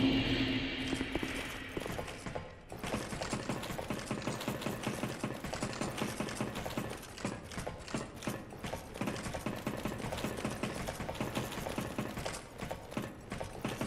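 Boots clank rhythmically on metal ladder rungs as someone climbs.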